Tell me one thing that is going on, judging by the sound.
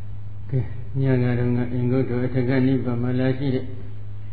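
An elderly man chants slowly in a deep voice.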